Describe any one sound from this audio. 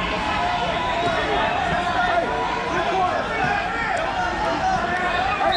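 A man coaches loudly from close by.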